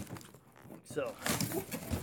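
Cardboard rustles and scrapes as a hand moves a box flap.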